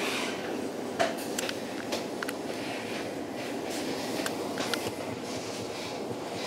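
Train wheels click and clatter over the rail joints.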